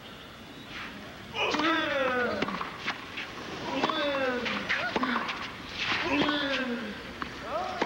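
A tennis ball is struck sharply by rackets in a rally.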